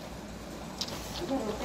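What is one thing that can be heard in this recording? A young woman talks softly nearby.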